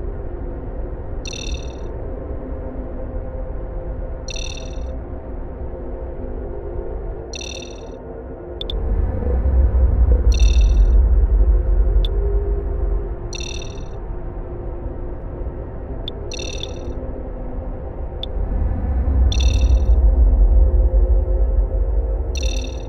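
A submarine's engine hums low and steadily, swelling louder at times.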